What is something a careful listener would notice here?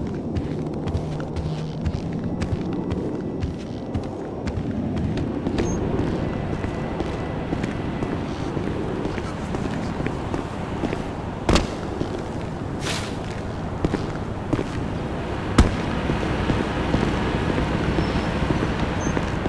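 Footsteps tap on a hard floor and pavement.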